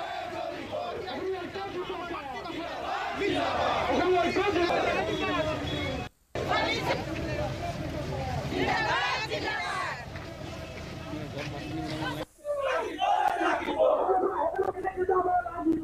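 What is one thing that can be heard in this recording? A crowd of protesters chants slogans.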